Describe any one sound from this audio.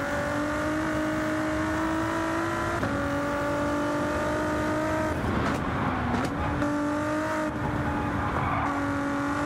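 A twin-turbo V6 race car engine roars at full throttle, its pitch dropping with each gear change.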